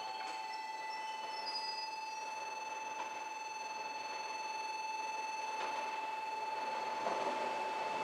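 An electric train approaches along the tracks, growing louder.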